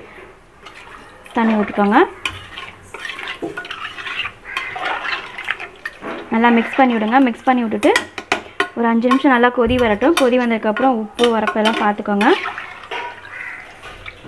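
A ladle stirs and sloshes through thick soup in a metal pot.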